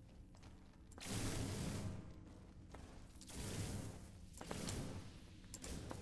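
Game weapon fire crackles in short bursts.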